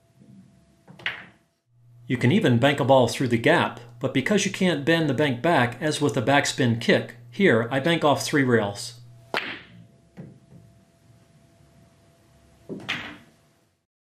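Billiard balls click sharply against each other and the cushions.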